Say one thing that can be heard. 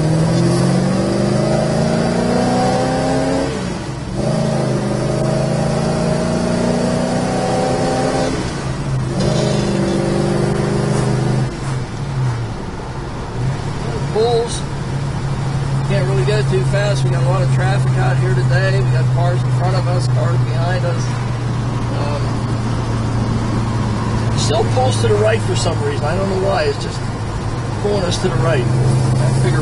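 A car engine revs up and shifts through its gears, then hums steadily.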